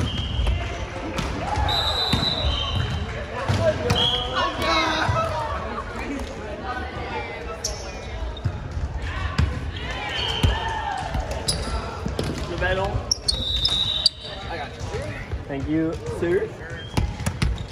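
Sneakers squeak sharply on a gym floor, echoing in a large hall.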